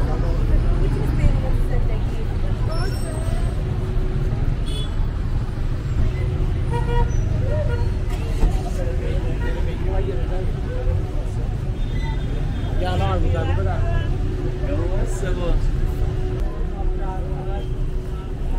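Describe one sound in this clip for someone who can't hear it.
Footsteps scuff along a pavement close by.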